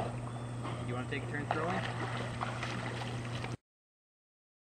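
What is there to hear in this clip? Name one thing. A dog's paws scrape and thump as it climbs out of the water.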